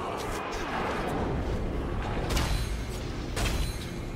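Blades clash and strike in a frantic fight.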